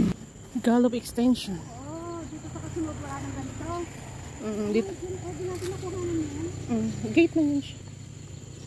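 A young woman talks with animation close by.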